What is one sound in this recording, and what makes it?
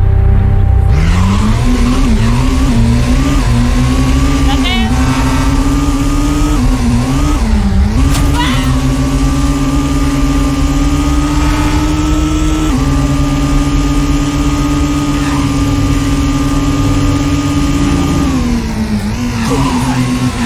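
A car engine revs hard, rising and dropping in pitch as the gears shift.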